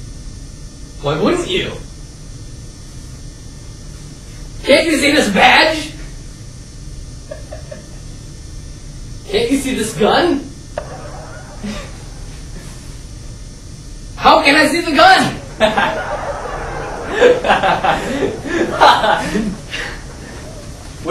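A teenage boy talks in short bursts in a large echoing hall.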